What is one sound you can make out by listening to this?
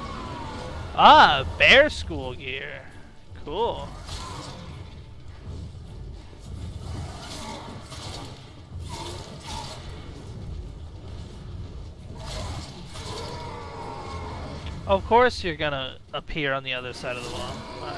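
A ghostly creature shrieks loudly.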